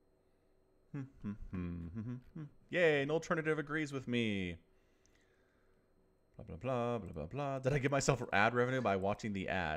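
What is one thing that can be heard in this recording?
A young man talks with animation, close to a headset microphone.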